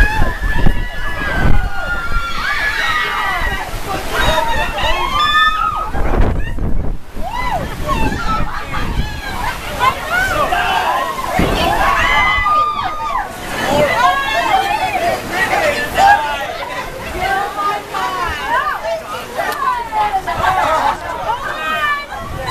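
Young men and women shout and scream excitedly nearby.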